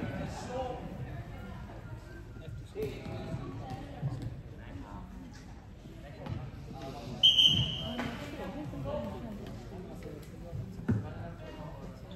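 Young players call out to each other in a large echoing hall.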